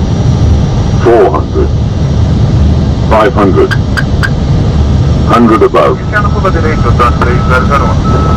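A man speaks in short bursts through a headset radio.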